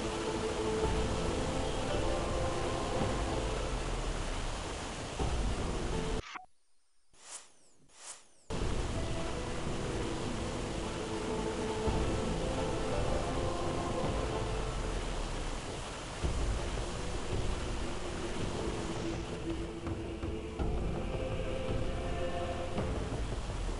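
Footsteps creak softly across wooden floorboards.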